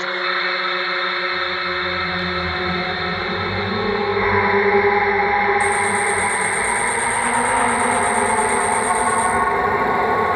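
Electronic dance music plays loudly through speakers in a large room.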